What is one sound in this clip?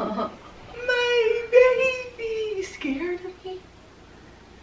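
A young woman calls out sweetly and encouragingly, close by.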